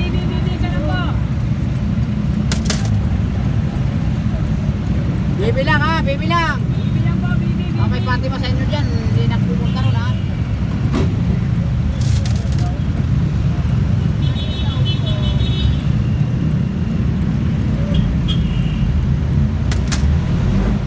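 A bus engine rumbles steadily from inside the vehicle.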